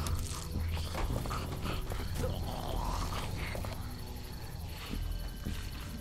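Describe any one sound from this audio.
Footsteps scuff on pavement at a walking pace.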